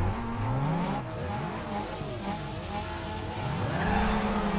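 Car engines rev up and down while idling.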